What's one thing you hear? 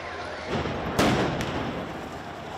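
A loud blast bangs and echoes along the street.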